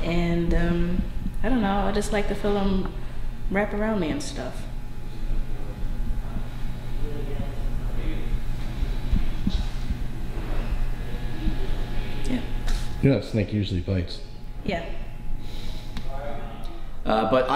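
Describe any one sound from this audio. A young woman talks calmly and cheerfully nearby.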